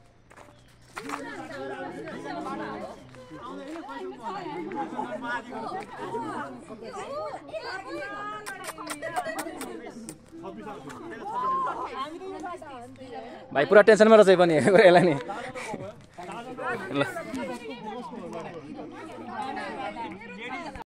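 Several men and women chat nearby outdoors.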